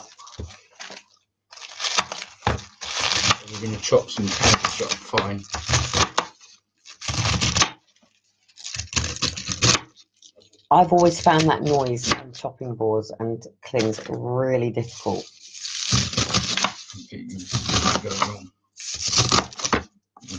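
A knife chops through crisp lettuce with crunching sounds.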